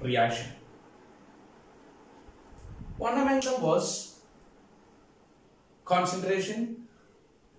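A man speaks calmly and clearly close to a microphone, in short phrases with pauses.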